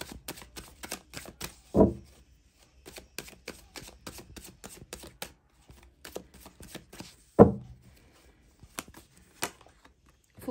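Playing cards riffle and flutter as they are shuffled by hand.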